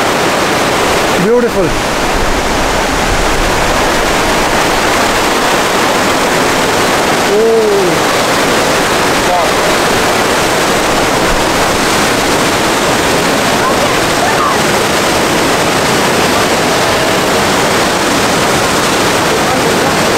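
Water rushes loudly and steadily close by.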